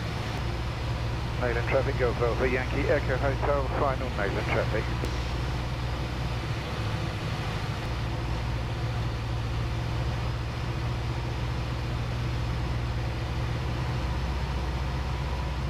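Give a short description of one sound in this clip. A small aircraft engine drones steadily.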